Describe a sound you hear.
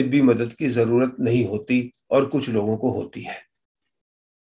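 An elderly man speaks calmly into a microphone, heard close up.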